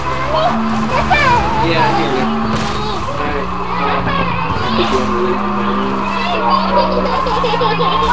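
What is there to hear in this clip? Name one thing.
A car scrapes and grinds against a wall.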